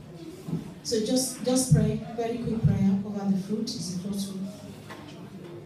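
A woman speaks with animation into a microphone, heard through loudspeakers in an echoing hall.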